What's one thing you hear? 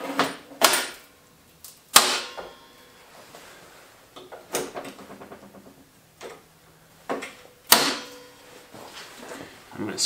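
Metal pieces clank and knock against a steel table.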